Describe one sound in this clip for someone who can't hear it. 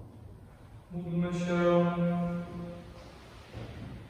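A man chants a sustained note in a large echoing hall.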